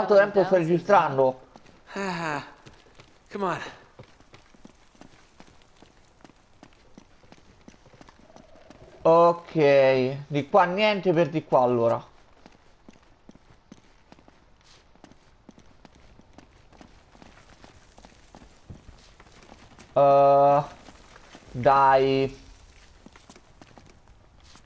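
Footsteps run quickly over hard floors and stairs.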